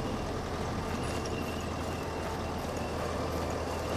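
Hands and boots clatter on a metal ladder during a climb.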